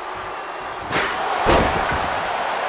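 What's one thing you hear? A metal chair slams onto a wrestler with a loud crack.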